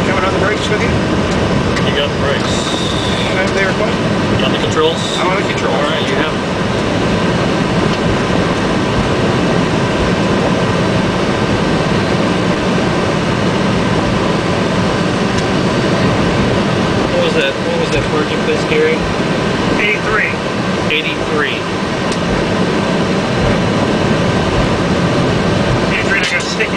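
Aircraft wheels rumble over a runway.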